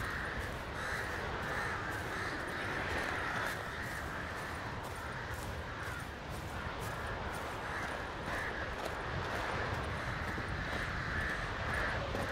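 Footsteps crunch steadily on rocky ground.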